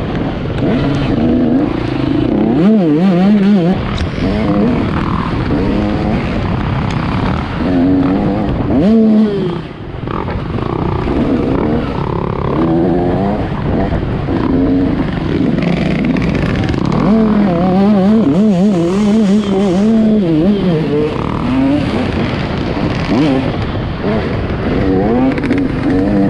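A dirt bike engine revs up and down.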